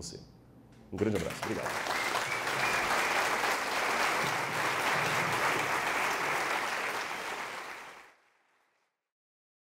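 A large audience applauds loudly in a hall, then the applause fades away.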